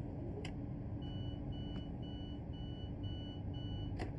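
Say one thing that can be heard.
A door warning chime beeps repeatedly.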